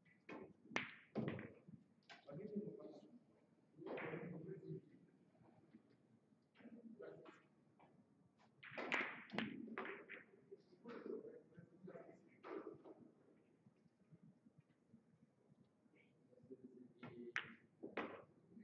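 Billiard balls knock together.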